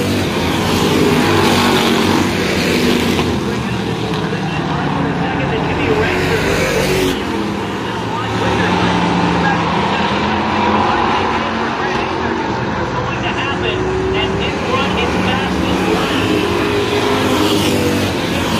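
Race car engines roar loudly as cars speed around a track.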